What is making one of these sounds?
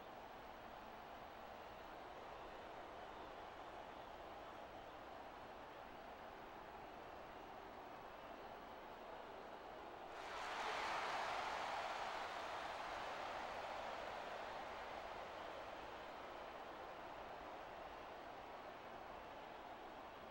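A large crowd cheers and roars in a big echoing arena, swelling suddenly louder partway through.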